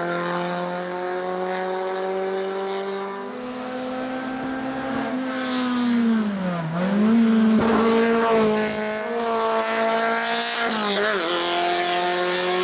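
A racing car engine roars loudly, revving up and down through gear changes.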